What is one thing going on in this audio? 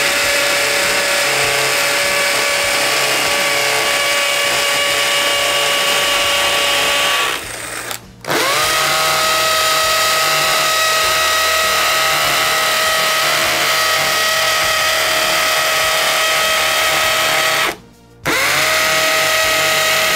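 A cordless hammer drill whines and pounds loudly into concrete, stopping briefly twice.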